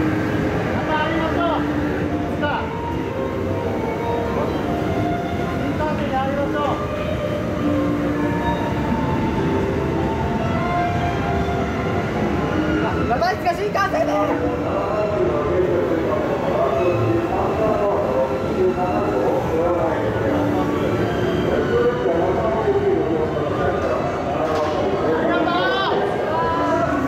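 A train rolls past close by with a steady rumble and clatter.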